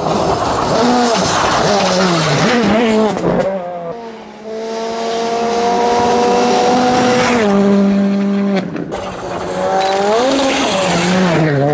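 Tyres spray gravel as a rally car passes.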